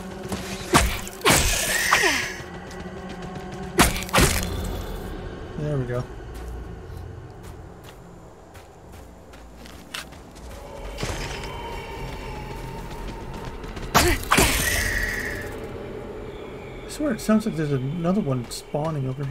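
Footsteps crunch softly on leafy ground.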